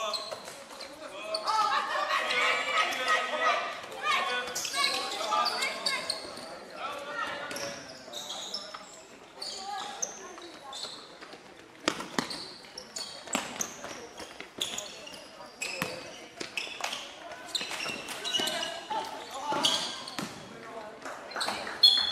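Sports shoes squeak sharply on a hard floor.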